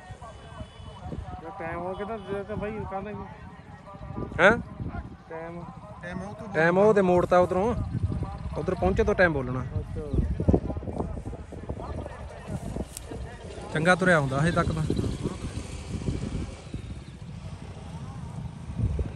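Motorcycle engines rumble along a dirt road.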